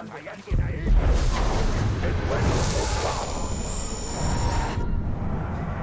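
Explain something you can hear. A creature growls and snarls.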